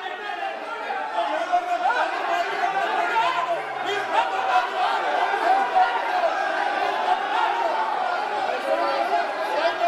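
Many voices murmur and call out in a large hall.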